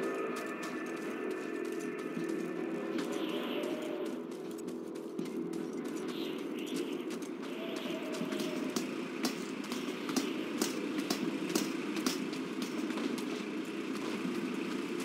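Footsteps crunch quickly over rubble and dirt.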